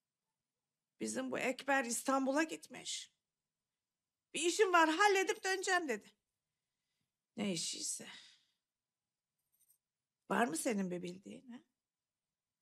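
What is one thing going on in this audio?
An elderly woman speaks earnestly, close by.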